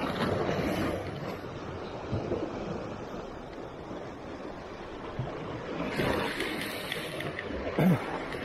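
Small waves lap and splash against rocks close by.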